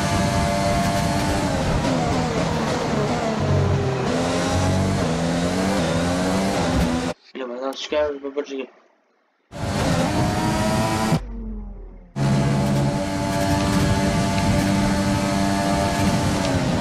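A racing car engine screams at high revs and shifts through gears.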